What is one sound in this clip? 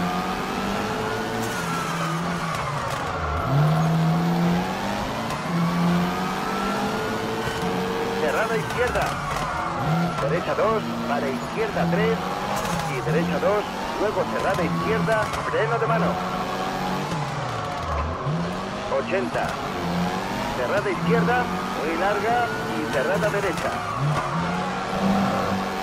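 A rally car engine revs hard, rising and falling as it shifts gears.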